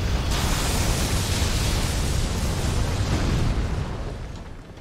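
Lightning crackles and rumbles loudly.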